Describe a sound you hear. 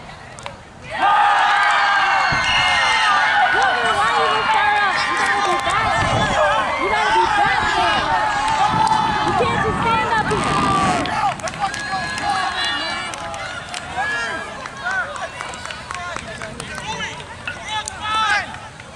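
A crowd of young spectators shouts and cheers loudly outdoors.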